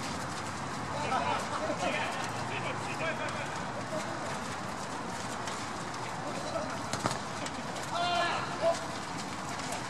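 Young men shout to each other from across an open field.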